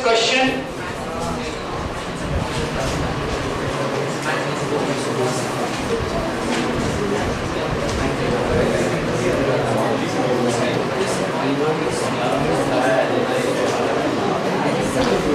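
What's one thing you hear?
A man talks steadily into a headset microphone.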